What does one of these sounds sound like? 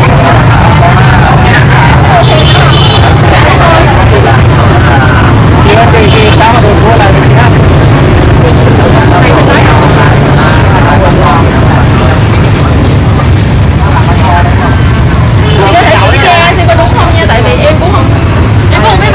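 Several men and women talk close by, with animation.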